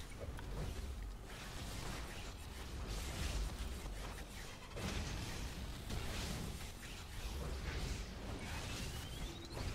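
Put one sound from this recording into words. Video game explosions and energy blasts crackle and boom.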